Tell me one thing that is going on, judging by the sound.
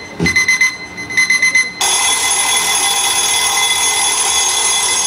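Loud dance music with a heavy beat booms over loudspeakers.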